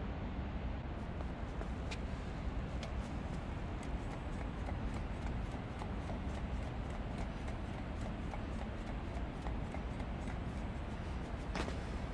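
Footsteps patter quickly on a metal floor.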